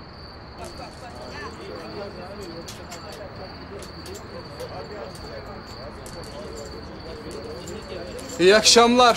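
Several men chat quietly in the background.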